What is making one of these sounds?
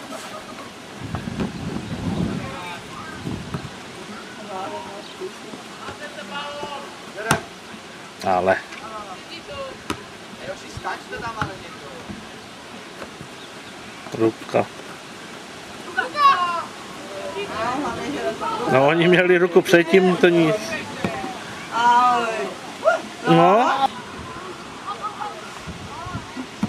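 Young players shout to one another across an open field.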